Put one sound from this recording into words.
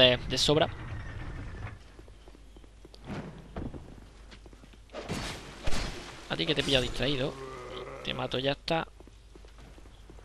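Footsteps thud on a stone floor.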